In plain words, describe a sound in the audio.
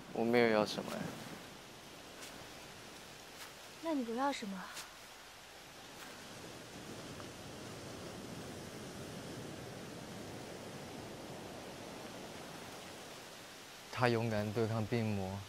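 A young man speaks quietly and calmly nearby.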